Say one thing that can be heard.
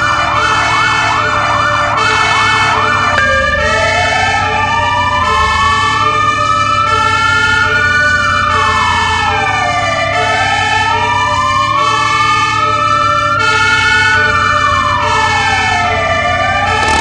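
A siren wails rapidly at first, then slowly rises and falls.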